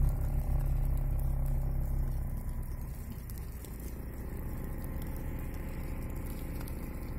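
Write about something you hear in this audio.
Burning grass crackles and pops.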